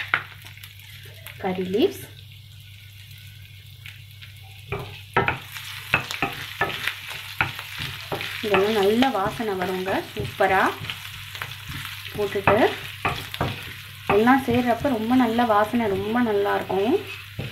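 Oil sizzles softly in a pan.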